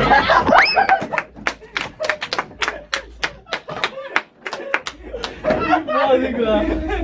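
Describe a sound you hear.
Young men laugh and shout loudly close by.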